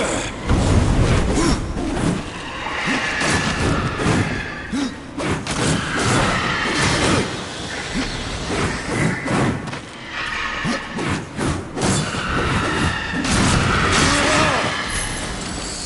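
Heavy blows thud as enemies are hit.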